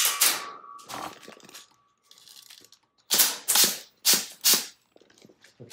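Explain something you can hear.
A gun fires several sharp shots that echo in a room.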